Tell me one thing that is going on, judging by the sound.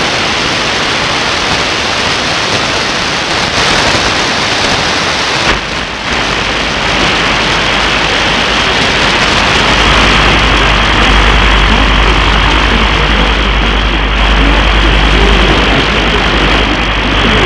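Radio static hisses and crackles steadily from a receiver.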